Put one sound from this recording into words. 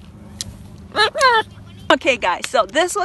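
A young woman talks excitedly and laughs close by.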